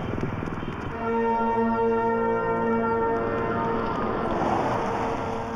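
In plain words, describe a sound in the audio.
An accordion plays a steady, held melody close by.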